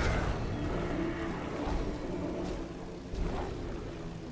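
Blades strike and clash in a brief fight.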